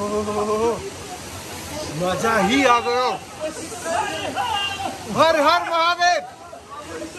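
A young man exclaims loudly and excitedly close by.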